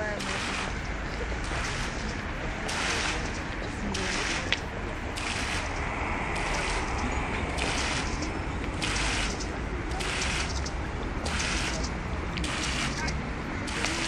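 A curtain of falling water splashes into a pool in bursts.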